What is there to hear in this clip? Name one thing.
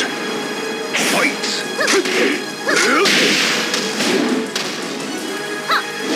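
Fighters grunt and shout while trading blows.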